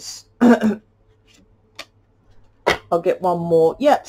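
A card is laid down on a wooden table with a light tap.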